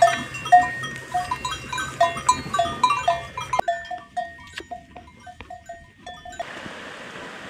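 Bells on goats jingle and clank close by.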